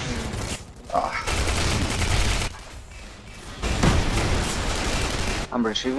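Energy guns fire in loud, sharp bursts.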